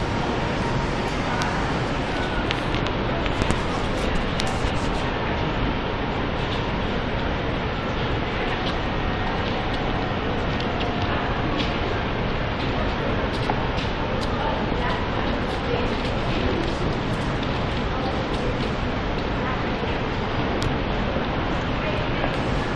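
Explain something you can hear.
Footsteps click and shuffle on a hard floor in a large echoing hall.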